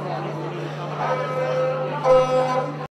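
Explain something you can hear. A man plucks a few notes on a lute.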